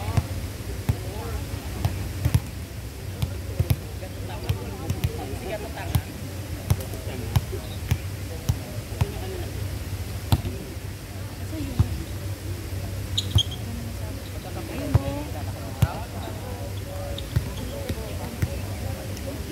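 Young people call out and chatter outdoors.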